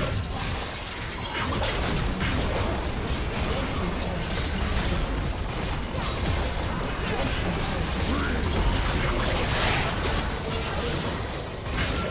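Spell blasts, hits and explosions from a video game crackle and boom without a break.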